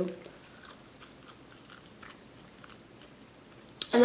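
A young woman crunches on a chip while chewing.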